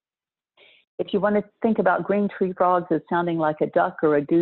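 A middle-aged woman speaks calmly through a microphone on an online call.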